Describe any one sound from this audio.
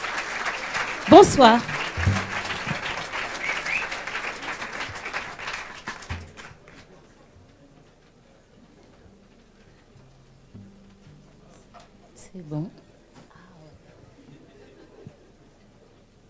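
A woman speaks and laughs through a microphone.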